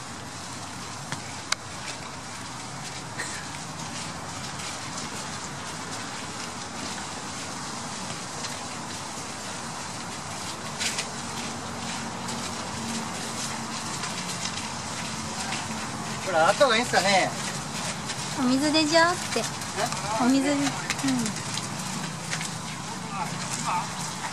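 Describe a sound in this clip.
Rain patters steadily on a wet field outdoors.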